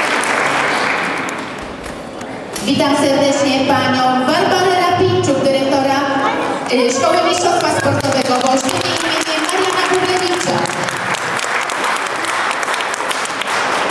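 Young girls clap their hands nearby.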